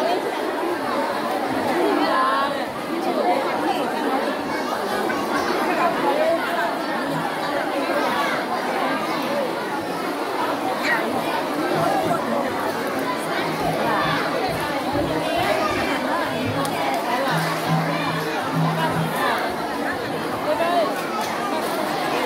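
A crowd of children chatter and shout in a large echoing hall.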